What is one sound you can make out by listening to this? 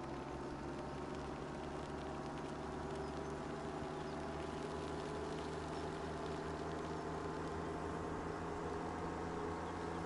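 A tractor engine rumbles steadily as it drives along.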